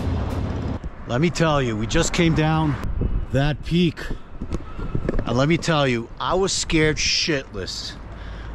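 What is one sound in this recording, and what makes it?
A middle-aged man talks with animation close to a helmet microphone.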